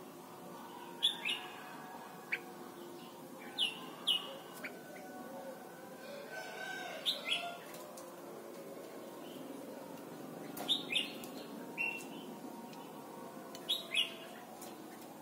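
A bird gives short, sharp chirps again and again, close by.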